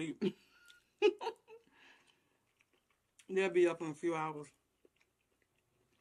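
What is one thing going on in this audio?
A young woman chews food wetly close to a microphone.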